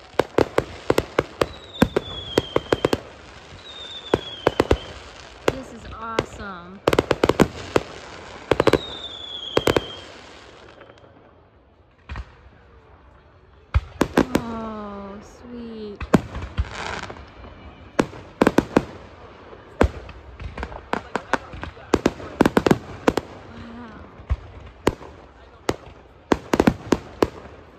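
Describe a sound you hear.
Aerial fireworks burst and crackle far off.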